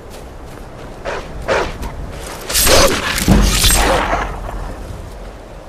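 A magic sword crackles and flares with a bright sizzling burst.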